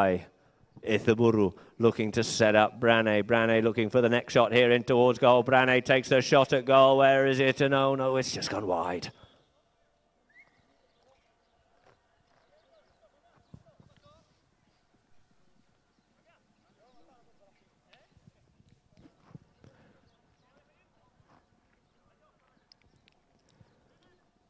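Horses gallop, hooves thudding on grass.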